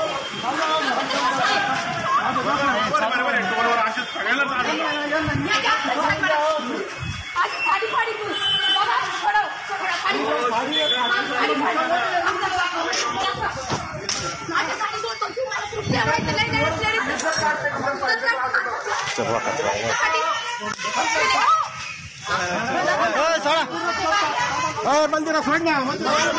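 A crowd of men and women talk and shout over each other nearby.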